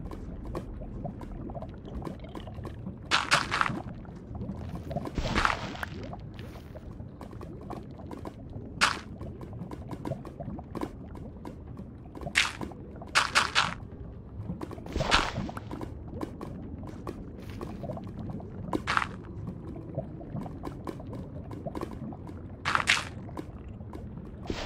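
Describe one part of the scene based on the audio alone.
Lava bubbles and pops steadily.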